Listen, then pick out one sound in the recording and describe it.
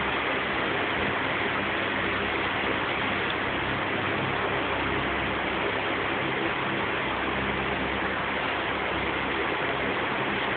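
Electric fans whir steadily in a large echoing hall.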